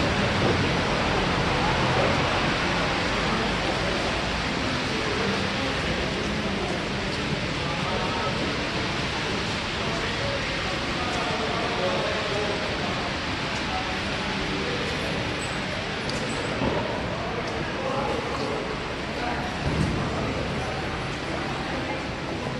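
A crowd murmurs softly in a large echoing space.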